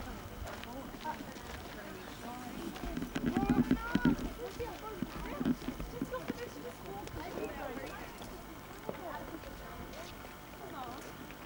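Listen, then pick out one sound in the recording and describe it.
A woman talks with animation nearby, outdoors.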